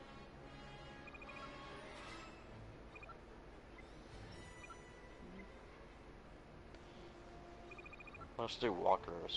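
Short electronic beeps tick quietly in quick runs.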